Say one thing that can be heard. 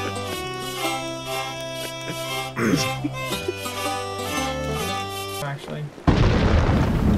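A banjo plays a lively tune.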